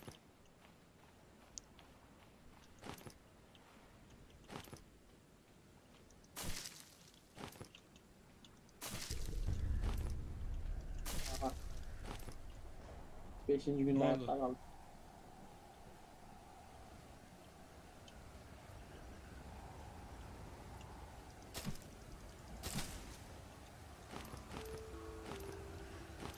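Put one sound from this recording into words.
Footsteps crunch and rustle through sand and leafy undergrowth.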